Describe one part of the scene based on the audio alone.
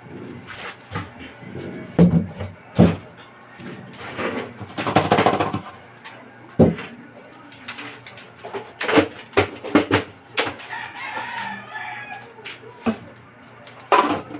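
A metal lid clanks against a metal pot.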